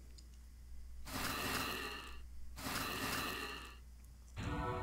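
A sword swings with a whooshing slash.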